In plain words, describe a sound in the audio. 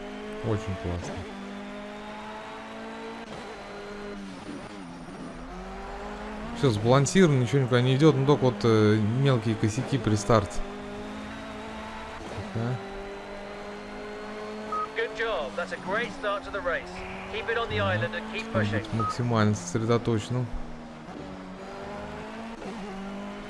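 A racing car engine roars at high speed, its pitch rising and falling as it shifts gears.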